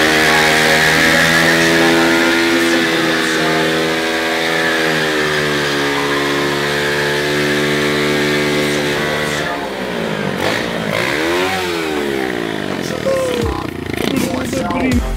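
A small motorbike engine revs loudly.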